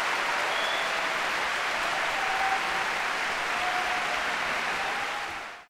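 A large choir sings with the orchestra.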